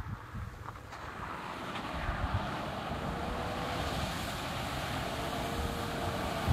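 A car splashes loudly through shallow water.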